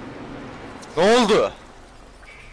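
A young man exclaims loudly, close to a microphone.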